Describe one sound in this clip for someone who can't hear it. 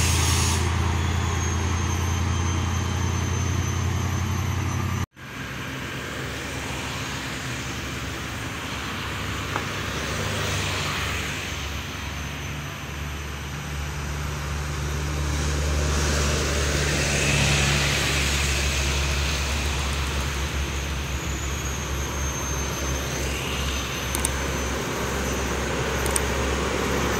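A heavy truck engine rumbles as the truck drives by on a road.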